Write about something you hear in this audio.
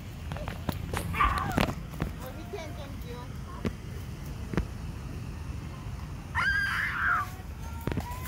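A young child shouts and squeals nearby.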